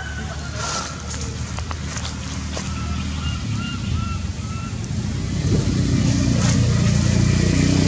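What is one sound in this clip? Dry leaves rustle softly as a monkey shifts on the ground.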